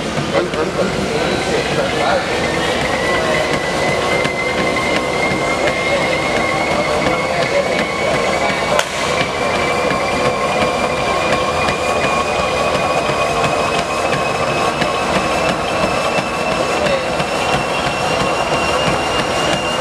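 Running feet pound rhythmically on a treadmill.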